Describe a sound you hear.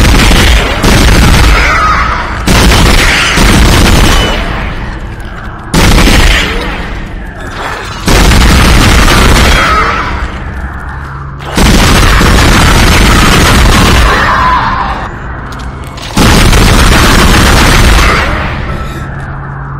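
A weapon fires in loud blasts that echo and fade.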